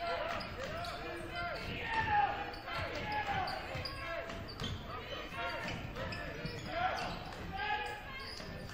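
A basketball bounces with dull thumps on a wooden floor.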